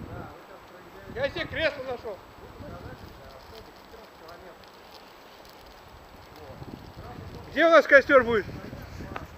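Wind rustles softly through pine branches overhead.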